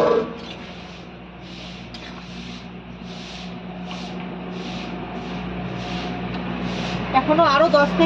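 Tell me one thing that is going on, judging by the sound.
A spatula scrapes in a metal pan.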